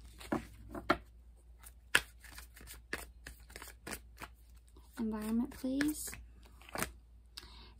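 Playing cards riffle and tap together.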